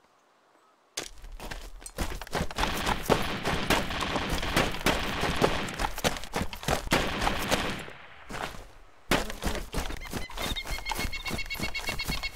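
Footsteps crunch through dry grass and gravel.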